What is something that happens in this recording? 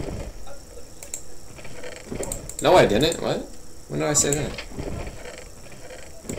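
A computer mouse clicks and keys tap on a keyboard.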